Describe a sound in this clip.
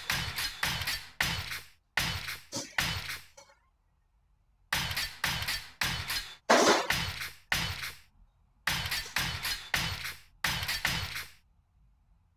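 A power tool grinds against stone in loud bursts.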